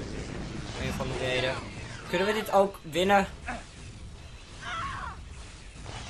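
An energy gun fires loud crackling blasts.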